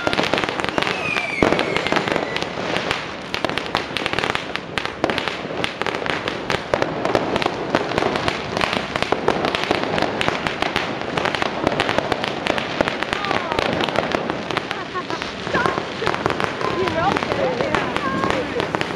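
Whistling rockets shriek as they fly up.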